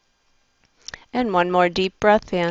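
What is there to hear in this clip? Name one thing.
A middle-aged woman speaks calmly, close to a headset microphone.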